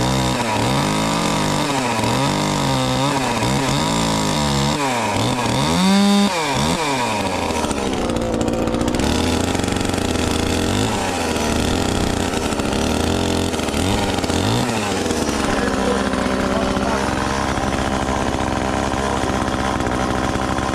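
A chainsaw engine runs close by, revving up and down.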